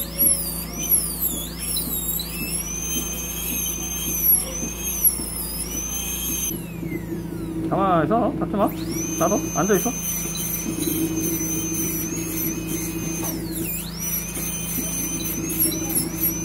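A dental drill whines at a high pitch, rising and falling as it grinds.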